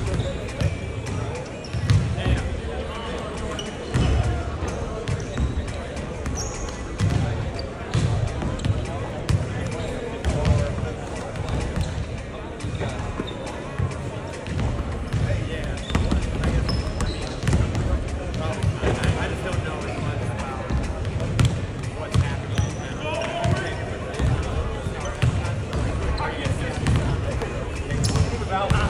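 A basketball bounces on a hard court in a large echoing gym.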